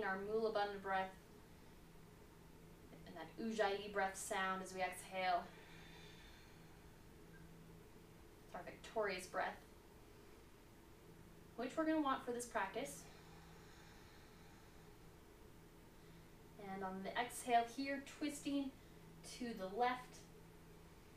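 A young woman speaks calmly and slowly, close to a microphone, with pauses.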